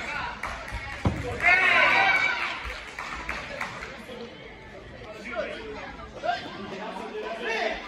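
Spectators chatter and call out in an echoing hall.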